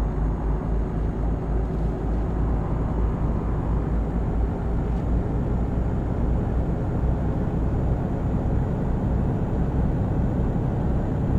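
A truck engine drones steadily at cruising speed.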